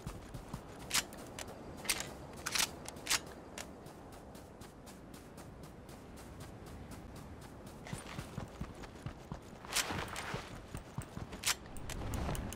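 Footsteps patter quickly on sand and rock.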